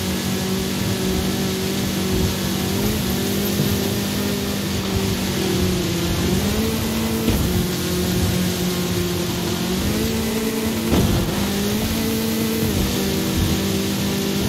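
An engine roars steadily and shifts pitch through gear changes.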